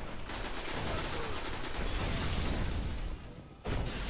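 An energy blast bursts with a loud boom.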